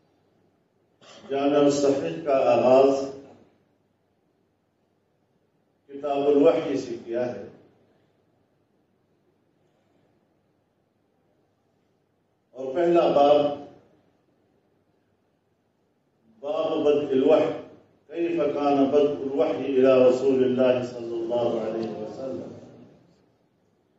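An elderly man speaks slowly into a microphone in short phrases, with long pauses between them.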